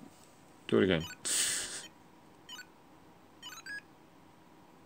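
A small electronic toy plays short, high beeping tones.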